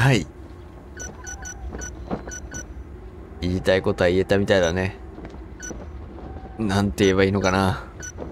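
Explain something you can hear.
Short electronic blips sound as a game menu selection moves.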